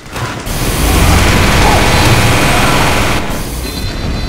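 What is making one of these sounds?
A loud rushing noise roars from a video game.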